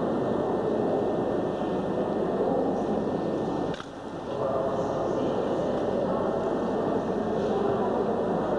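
Elderly men chant together in a reverberant hall.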